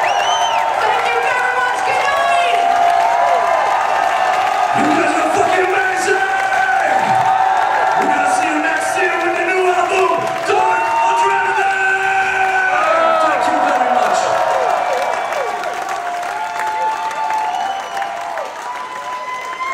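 A band plays loud music through loudspeakers.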